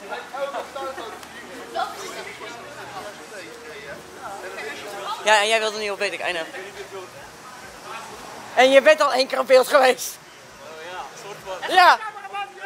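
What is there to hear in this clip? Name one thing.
Young men and women talk and chatter casually nearby, outdoors.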